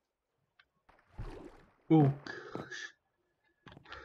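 Water splashes and sloshes as a swimmer moves through it.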